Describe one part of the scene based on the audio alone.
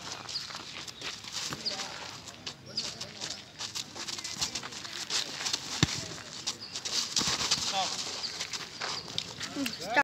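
Feet scuff on dry dirt ground.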